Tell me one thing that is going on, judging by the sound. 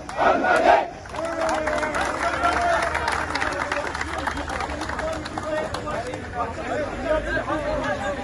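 A crowd of adults murmurs and talks in the background.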